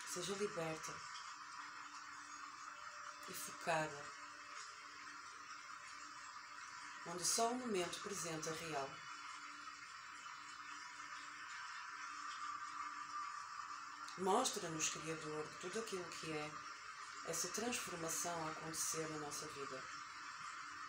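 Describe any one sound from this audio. A young woman speaks softly and slowly, close to a microphone, with long pauses.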